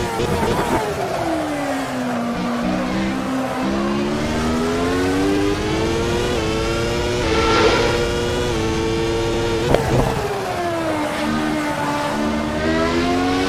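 A racing car engine screams, rising and falling in pitch as the gears shift.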